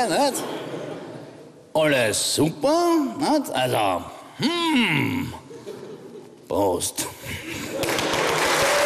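A man sings loudly and theatrically with sweeping swoops in pitch.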